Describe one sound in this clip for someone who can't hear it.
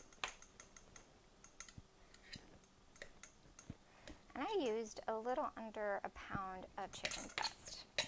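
A woman mixes food in a metal bowl with light clinks and scrapes.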